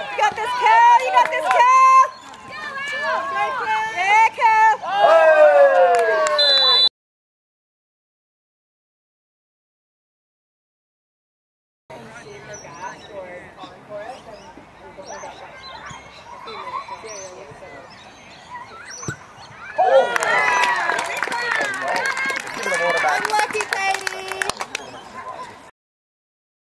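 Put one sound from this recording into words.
Young women shout and cheer excitedly outdoors.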